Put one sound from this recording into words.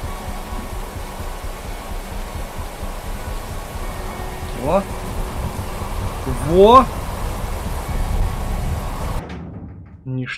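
Wind blows steadily and roars.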